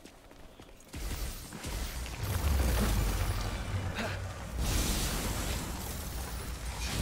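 Heavy blows and crashes burst out in a fight.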